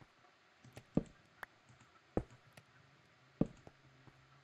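Stone blocks knock sharply as they are broken and placed.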